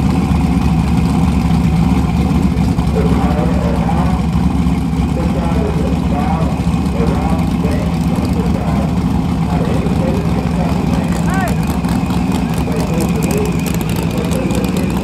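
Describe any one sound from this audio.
A car engine idles with a deep, lumpy rumble close by.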